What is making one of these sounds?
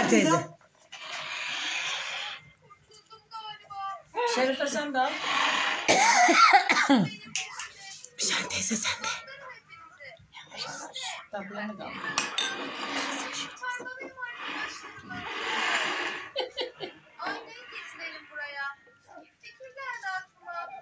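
Women talk and laugh nearby with animation.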